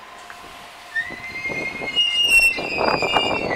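A train arrives, its brakes squealing as it slows.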